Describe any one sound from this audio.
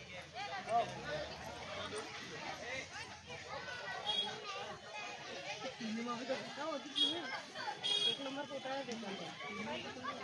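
A crowd of men and women talk and shout excitedly nearby.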